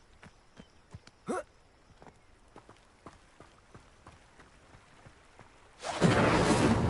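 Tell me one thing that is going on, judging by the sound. Footsteps run quickly over grass and stone.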